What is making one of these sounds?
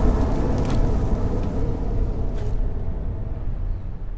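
Heavy armour clanks as a knight collapses to the ground.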